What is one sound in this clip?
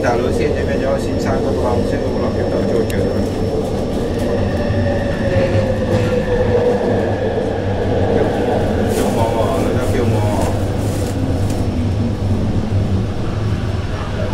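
A train rumbles and hums steadily along an elevated track.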